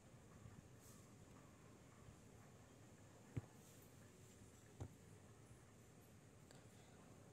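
Light rain patters softly outdoors.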